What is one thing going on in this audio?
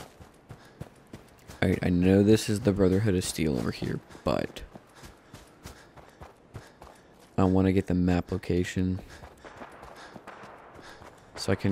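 Footsteps crunch softly over rough ground.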